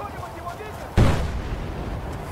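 A large explosion booms close by.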